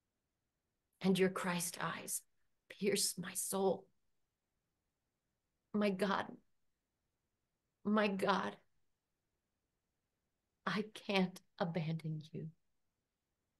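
A middle-aged woman speaks calmly in short phrases over an online call.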